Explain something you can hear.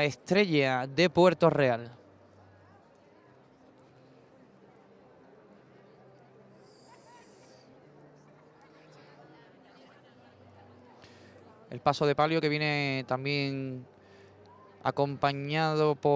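A large crowd murmurs quietly outdoors.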